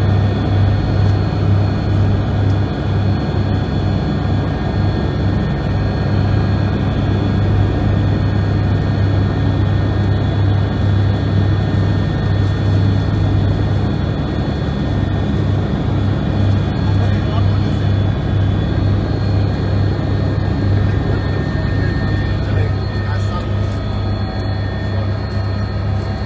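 A helicopter engine and rotor drone loudly and steadily from inside the cabin.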